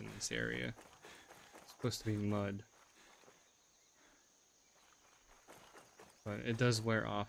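Footsteps tread softly on dirt and leaves.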